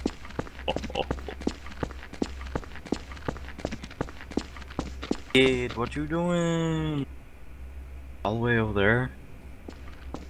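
Footsteps tread along a dirt path.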